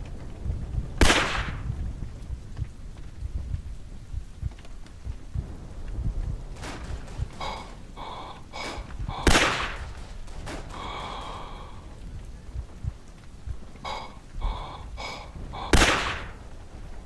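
A rifle fires loud single shots, a few seconds apart.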